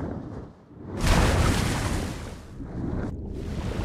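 A loud magical whoosh bursts out and slowly fades.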